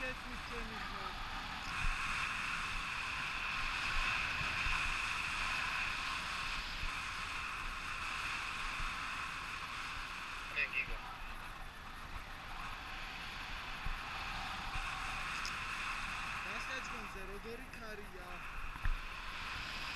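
Wind rushes loudly past, high in the open air.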